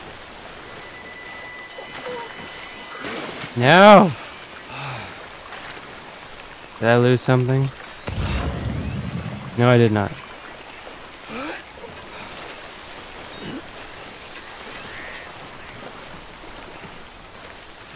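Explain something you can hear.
Water splashes as a figure wades and swims.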